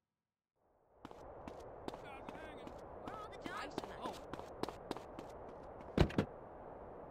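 Footsteps patter quickly on pavement outdoors.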